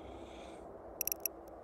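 Short electronic menu beeps sound.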